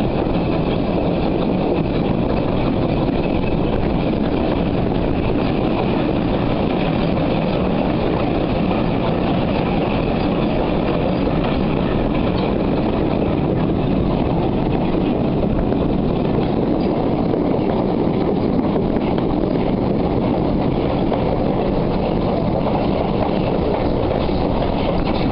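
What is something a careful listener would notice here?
A steam locomotive rumbles and chugs steadily along the track.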